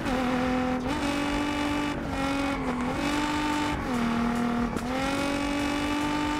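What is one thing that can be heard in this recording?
A sports car engine roars steadily, its pitch shifting up and down as the car changes speed.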